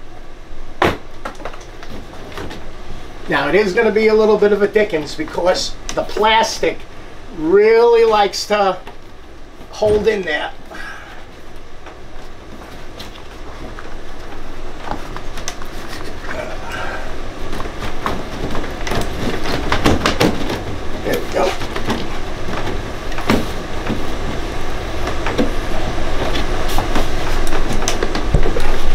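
Plastic parts knock and click as they are fitted together.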